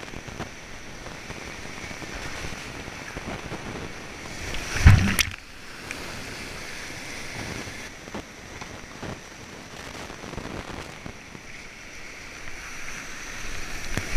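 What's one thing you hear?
Whitewater rushes and roars loudly all around.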